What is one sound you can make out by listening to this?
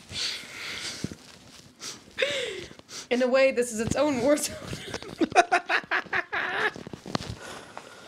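A man laughs heartily into a microphone.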